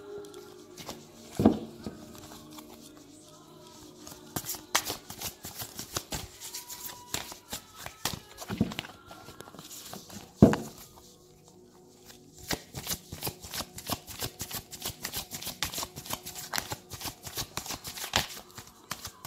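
Fingers tap and click on a hard card deck close by.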